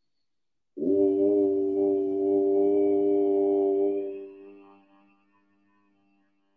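A man chants a long, steady tone that slowly fades away.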